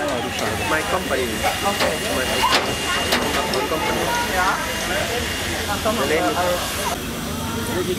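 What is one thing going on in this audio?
Children chatter and call out excitedly close by.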